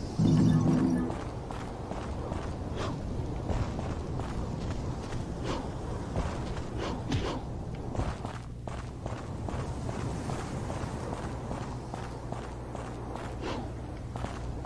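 Quick footsteps patter as a figure runs along stone.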